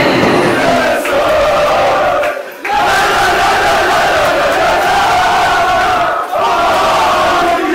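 A group of young men sings and chants loudly together in an echoing room.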